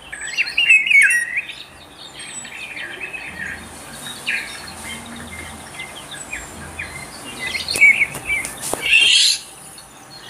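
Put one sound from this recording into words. A songbird whistles in short, fluting phrases.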